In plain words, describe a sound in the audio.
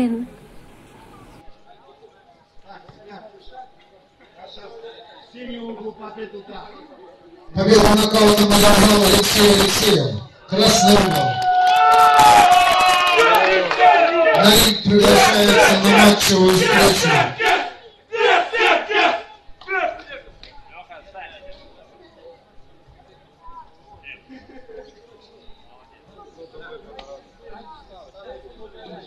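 People chatter quietly in the background.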